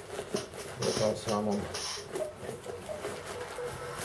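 Packing tape rips off a cardboard box.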